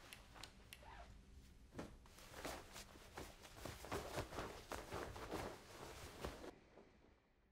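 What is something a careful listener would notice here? Bed sheets rustle and flap as they are shaken out.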